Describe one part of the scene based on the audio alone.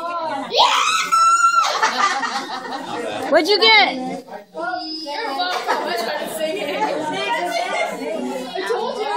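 A small crowd of adults and children talks and laughs at once.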